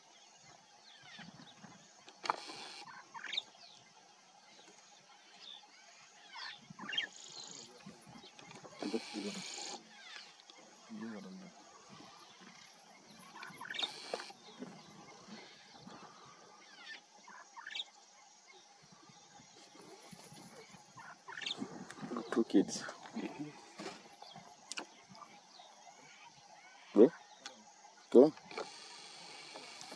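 Lion cubs suckle noisily.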